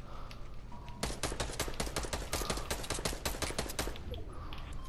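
Building pieces snap into place with quick, rapid clicks.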